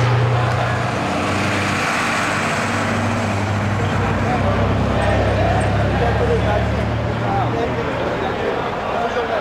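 A bus engine rumbles as it drives past.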